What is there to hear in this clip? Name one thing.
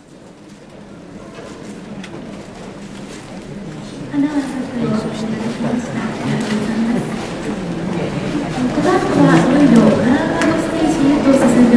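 A wind band plays in a large hall, growing louder.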